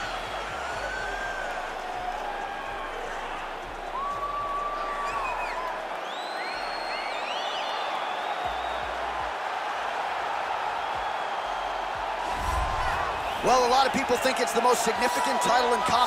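A large crowd cheers and whistles in a big echoing arena.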